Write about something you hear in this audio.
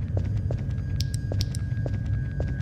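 A flashlight switch clicks off and on.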